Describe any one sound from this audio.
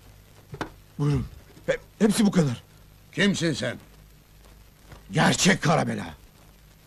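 A middle-aged man speaks forcefully and with animation, close by.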